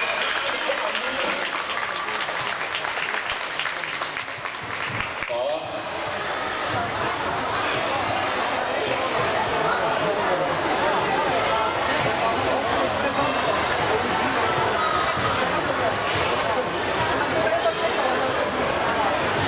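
Music plays loudly over loudspeakers in a large echoing hall.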